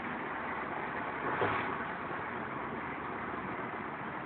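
A van passes close by with a rushing whoosh.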